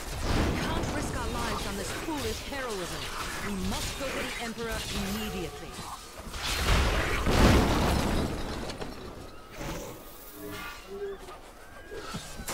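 Video game combat sounds clash and burst with magic effects.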